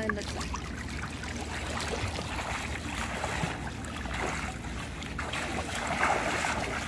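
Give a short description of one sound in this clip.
Water splashes as a girl swims on her back.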